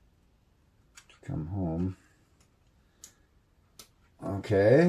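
Small plastic parts click softly as they are handled.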